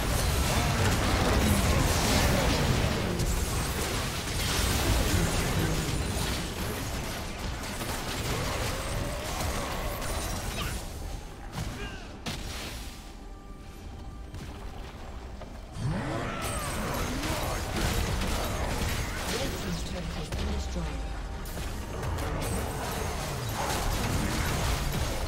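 Game combat effects crackle and blast in quick bursts.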